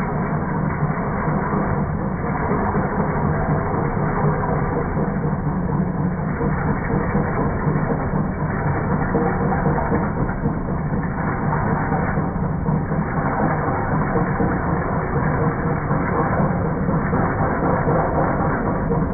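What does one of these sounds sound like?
A chisel scrapes and shears against spinning wood.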